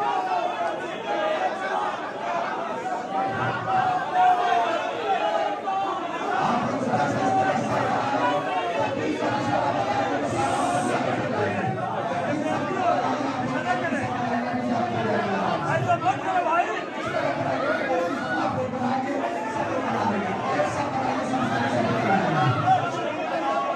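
Men shout and cheer excitedly.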